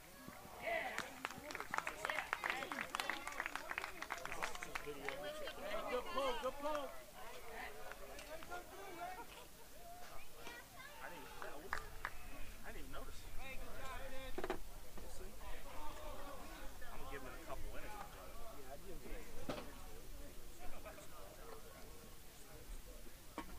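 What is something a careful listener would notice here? Distant players shout and call out across an open field outdoors.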